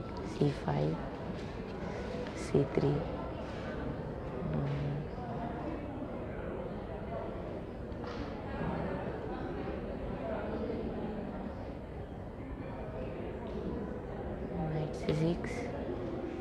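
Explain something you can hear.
Plastic chess pieces tap down on a board.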